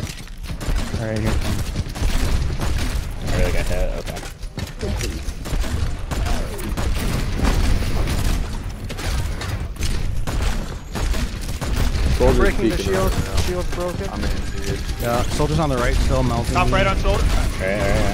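A heavy gun fires rapid bursts of shots.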